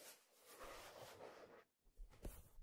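Fingers rub and rustle softly against leather, very close.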